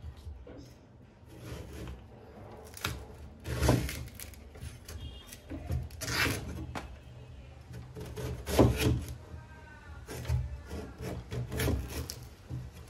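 A heavy cleaver chops through a coconut and thuds onto a wooden board.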